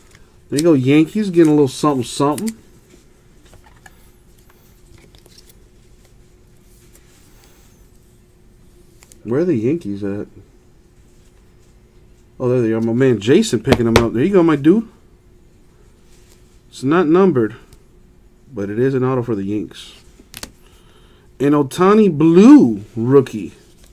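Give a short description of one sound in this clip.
Plastic card cases tap and rustle in hands.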